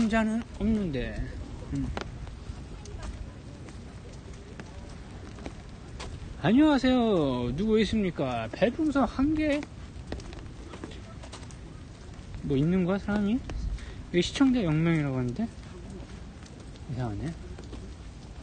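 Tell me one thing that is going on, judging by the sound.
A young man talks casually and close up, in short bursts with pauses.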